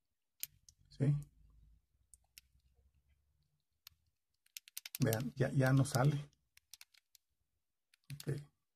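A small metal fitting clicks as fingers handle it.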